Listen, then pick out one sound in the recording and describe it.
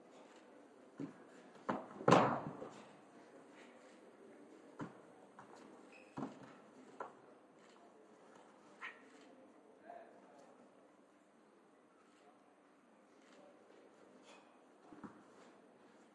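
Martial artists' feet thud and slap on a mat in an echoing hall.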